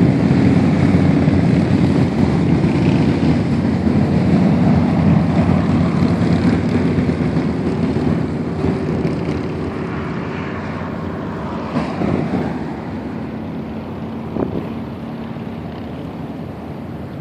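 Traffic roars steadily along a highway outdoors, slowly growing quieter.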